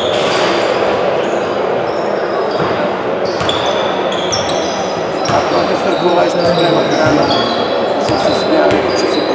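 Spectators whistle shrilly again and again.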